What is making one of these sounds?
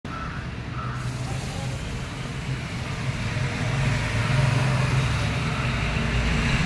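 A steam wand hisses loudly as milk is frothed.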